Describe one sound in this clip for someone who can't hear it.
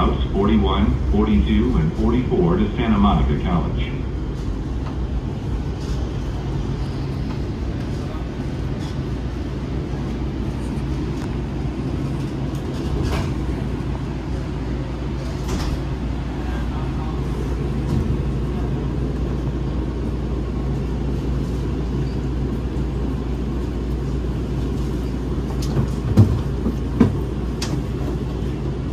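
A light rail train hums and rumbles steadily.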